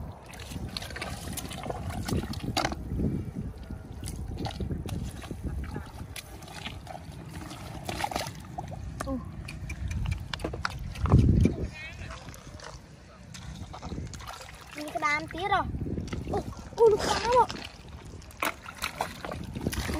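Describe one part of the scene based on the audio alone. Bare feet squelch and slosh through wet mud.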